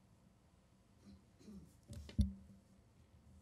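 A woman speaks softly through a microphone.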